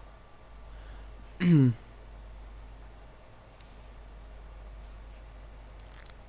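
Poker chips clack softly against each other.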